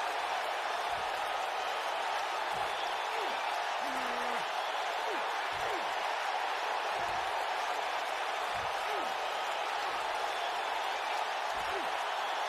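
A crowd roars steadily in a large arena.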